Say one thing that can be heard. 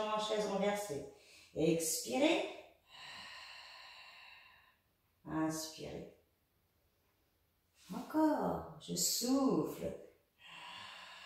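A woman speaks calmly nearby, with pauses between phrases.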